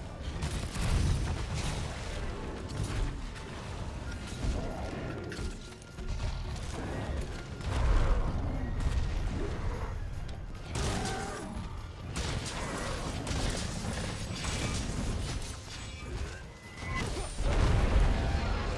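A huge beast roars and growls.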